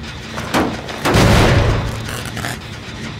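A metal machine sparks and crackles with a loud burst.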